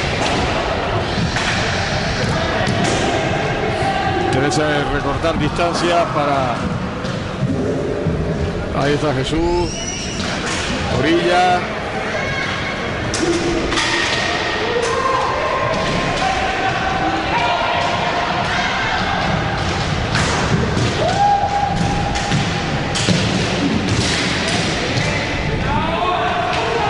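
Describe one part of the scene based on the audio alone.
Roller skates roll and scrape across a wooden floor in a large echoing hall.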